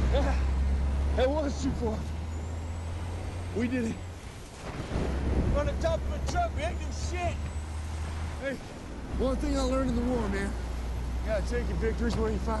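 A young man shouts with strain, close by.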